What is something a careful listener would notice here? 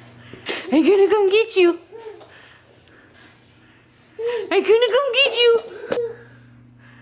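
A baby babbles and squeals.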